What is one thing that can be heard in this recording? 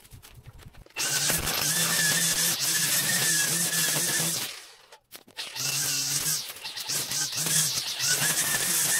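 A cordless string trimmer whirs loudly in bursts, cutting weeds close by.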